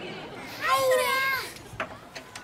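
A child calls out briefly outdoors.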